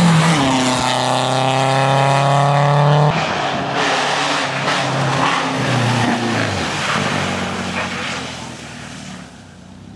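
A rally car engine roars loudly at high revs as the car speeds past.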